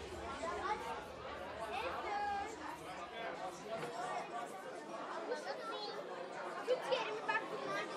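Women and children chatter nearby.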